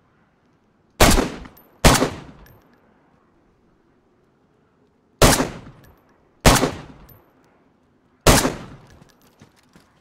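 A rifle fires single loud shots that echo away.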